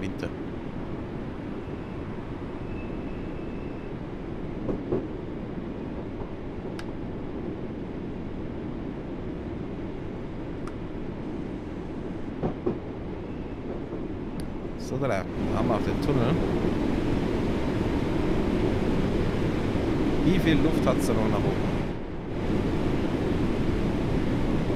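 A train's wheels clatter over the track joints.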